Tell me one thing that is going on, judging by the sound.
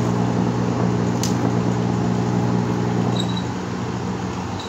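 An electric spark buzzes and crackles loudly with a steady hum.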